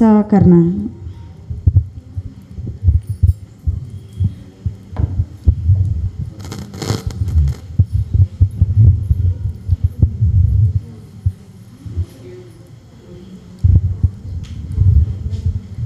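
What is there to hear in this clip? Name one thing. A microphone thumps and rustles as it is handled.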